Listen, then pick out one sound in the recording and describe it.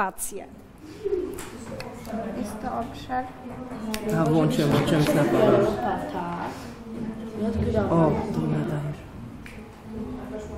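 Children chatter and laugh in the background.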